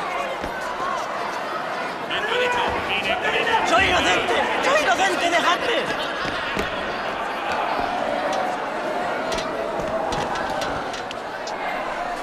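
A crowd of people shouts and cries out in an echoing space.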